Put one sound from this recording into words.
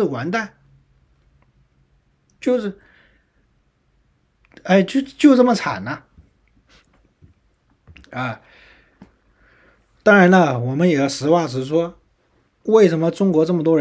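A young man speaks calmly into a microphone, in short bursts with pauses.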